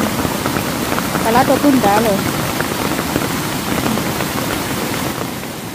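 Water rushes steadily over a small weir outdoors.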